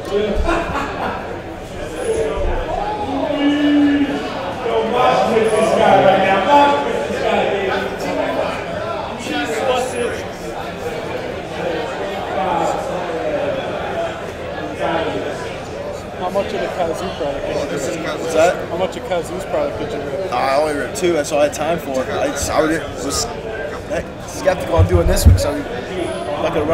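A man talks casually into a microphone, close by.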